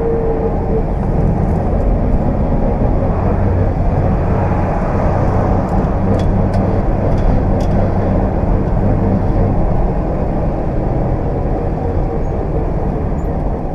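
An old car engine rumbles steadily from inside the car.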